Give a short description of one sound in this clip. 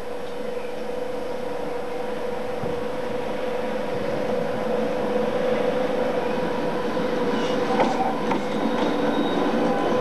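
A diesel freight locomotive approaches and passes close by, its engine droning.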